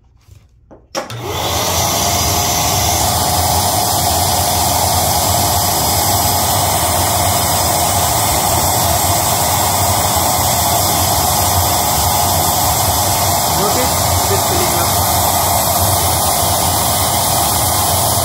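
An electric air pump switches on and whirs loudly and steadily.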